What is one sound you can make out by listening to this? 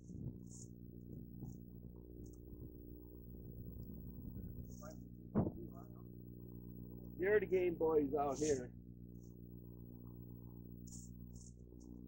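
A plastic tarp scrapes and rustles as it drags over dirt.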